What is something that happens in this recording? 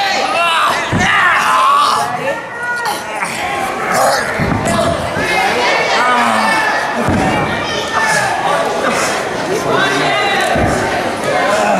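A body slams onto a ring mat with a loud thud.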